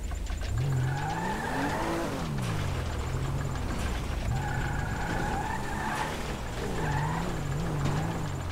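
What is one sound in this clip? Tyres screech on pavement as a car skids.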